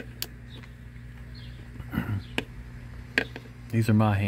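A small plastic tool clicks against a rubber door seal.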